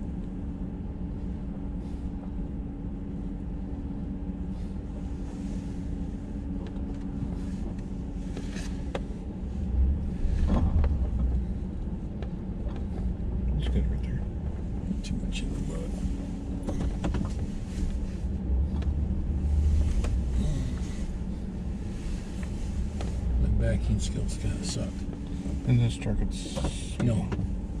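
An engine hums steadily inside a vehicle.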